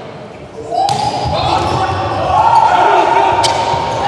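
A volleyball is struck hard during a rally.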